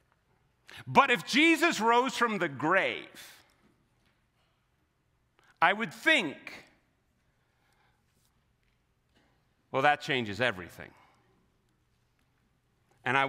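A man speaks with animation into a microphone, pausing between phrases.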